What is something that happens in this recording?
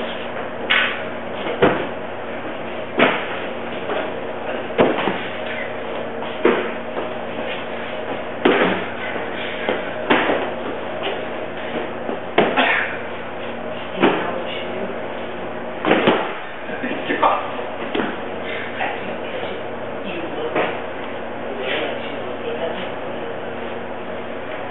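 Young men talk and laugh close by.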